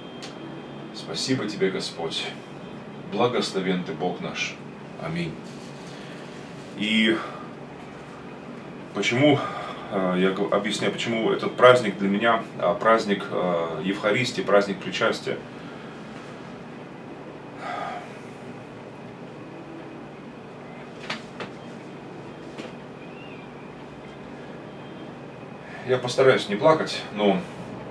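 A middle-aged man speaks calmly and close by, with pauses.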